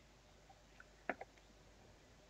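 A plastic bottle is set down on a hard mat with a soft knock.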